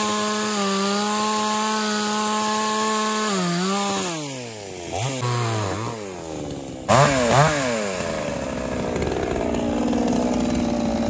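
A chainsaw engine runs loudly outdoors, revving up and down.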